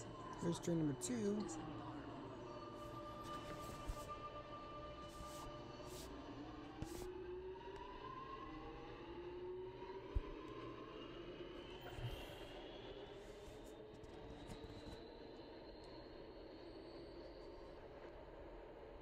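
A train's electric motors whine, gliding up and down in pitch.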